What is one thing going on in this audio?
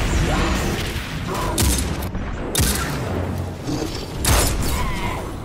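A sniper rifle fires a single sharp shot.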